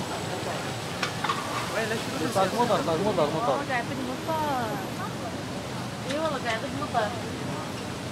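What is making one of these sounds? Young women talk with animation nearby.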